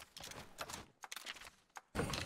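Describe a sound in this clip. Soft clicks tick as a game menu is browsed.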